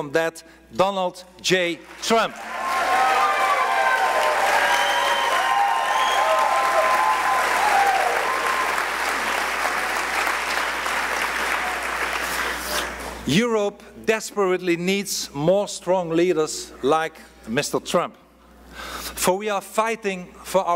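A middle-aged man speaks firmly into a microphone in a large hall.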